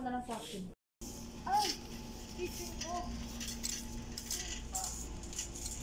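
A shopping cart rattles as it rolls along.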